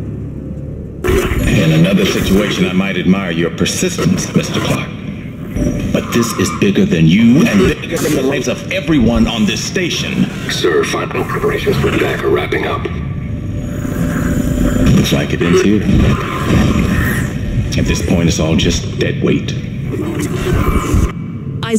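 A middle-aged man speaks sternly through a video call.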